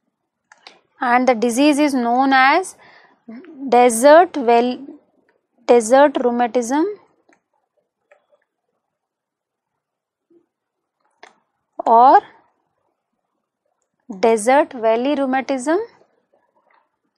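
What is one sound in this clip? A woman speaks calmly and clearly into a microphone, pausing between phrases.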